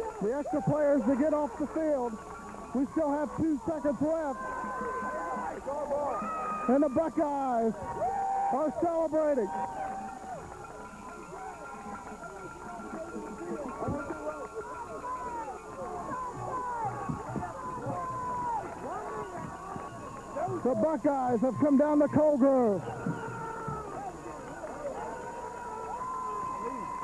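A crowd in the stands cheers and shouts loudly nearby.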